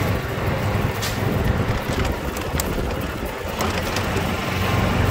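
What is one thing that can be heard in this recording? Small bumps in the road rattle the golf cart.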